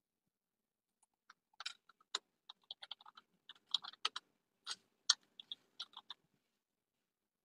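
Fingers tap quickly on a keyboard.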